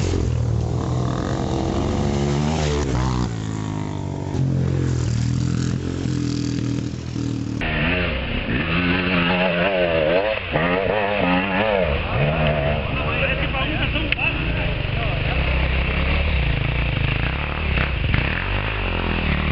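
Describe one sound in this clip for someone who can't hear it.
A dirt bike engine revs loudly, its pitch rising and falling.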